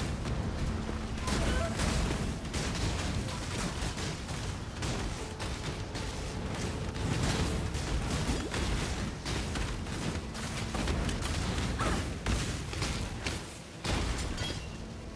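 Fiery explosions boom and crackle again and again.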